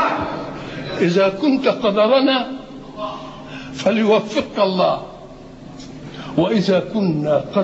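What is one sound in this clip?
An elderly man speaks with emotion into a microphone.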